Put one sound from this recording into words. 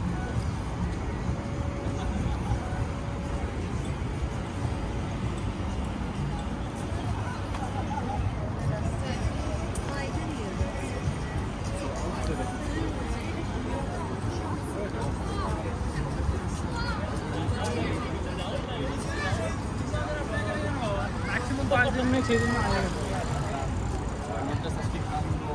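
A crowd of men and women chatters at a distance outdoors.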